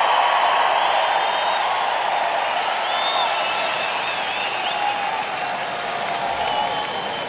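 A large arena crowd cheers.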